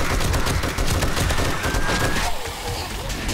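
A rapid-fire gun shoots in quick bursts.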